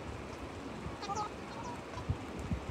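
A video game plays short chirping dialogue tones.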